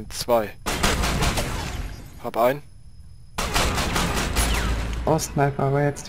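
A rifle fires rapid shots that echo in a large hall.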